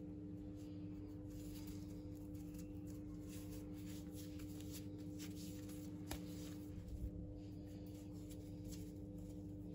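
Hands roll and squeeze soft dough.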